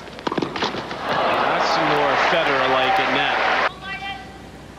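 A large crowd cheers and applauds loudly, then quickly falls quiet.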